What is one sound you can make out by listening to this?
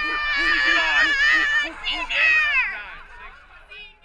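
Young women scream with excitement close by.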